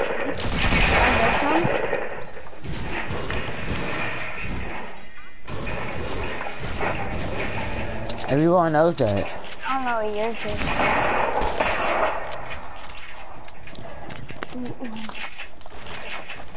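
Wooden panels clatter into place as structures are built quickly in a video game.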